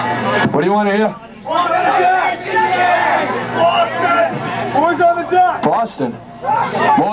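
A man sings loudly into a microphone over a loudspeaker.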